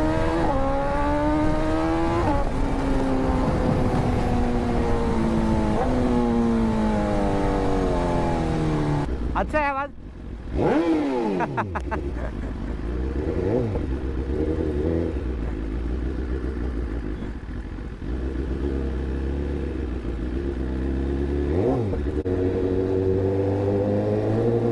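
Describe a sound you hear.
A motorcycle engine revs up and down through the gears as it rides.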